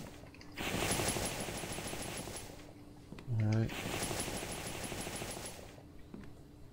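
Footsteps thud across wooden boards.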